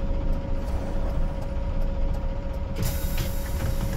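Bus doors hiss open with a burst of air.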